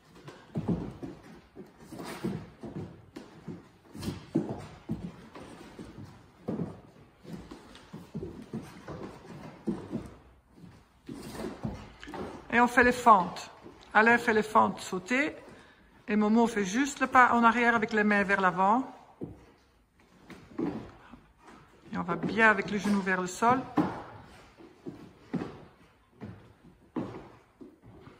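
Feet and hands thump and shuffle on a wooden floor.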